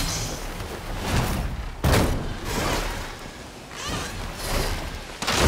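Large wings beat and whoosh in the air.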